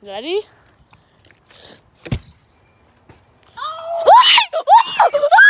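A young child squeals and shouts excitedly close by.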